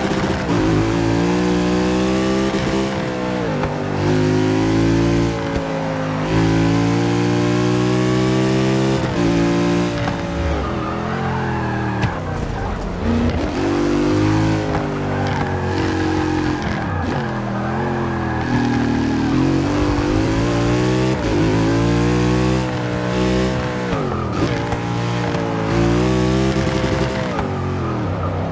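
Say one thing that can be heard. A racing car engine roars, revving up through the gears and dropping sharply at each shift and braking.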